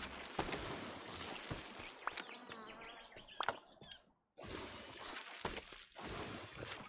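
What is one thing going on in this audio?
Magical sparkling effects crackle and chime.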